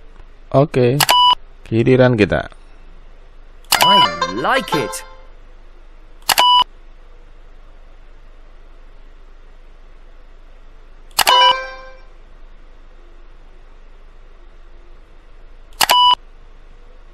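Short electronic chimes ring out now and then.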